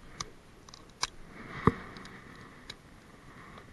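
Hands handle bait close by with a few sharp clicks and rustles.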